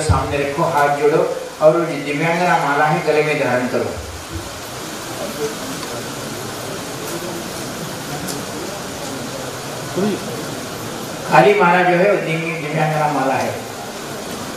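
A man speaks into a microphone with animation, heard through a loudspeaker.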